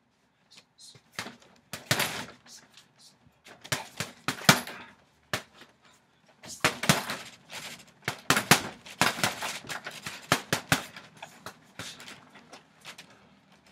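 A heavy bag's chain rattles and creaks as it swings.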